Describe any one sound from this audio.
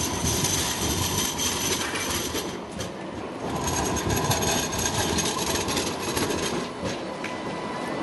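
A tram rolls past close by, its wheels rumbling and squealing on the rails.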